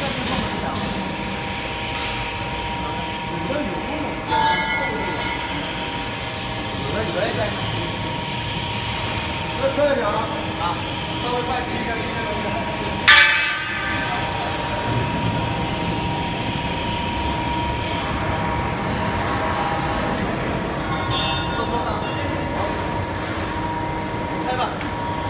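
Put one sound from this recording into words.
Large industrial rollers spin with a steady machine hum.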